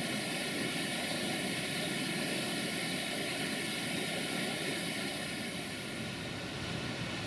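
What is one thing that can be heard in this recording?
Rushing water splashes loudly over rocks.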